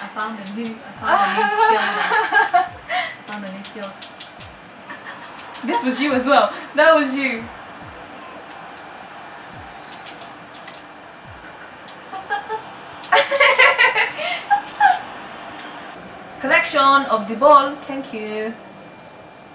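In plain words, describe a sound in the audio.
Young women laugh.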